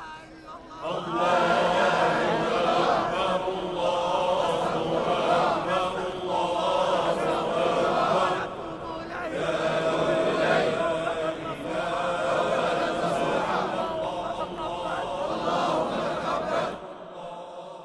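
A large crowd chants together.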